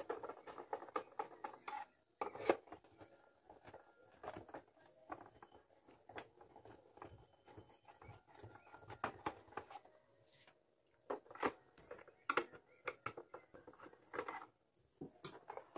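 A screwdriver scrapes and taps on plastic.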